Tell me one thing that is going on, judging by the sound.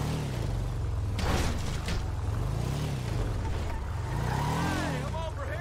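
A vehicle engine rumbles and revs up and down as it drives.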